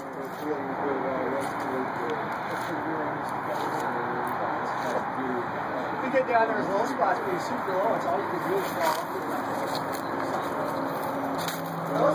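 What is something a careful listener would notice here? Several middle-aged men chat casually nearby outdoors.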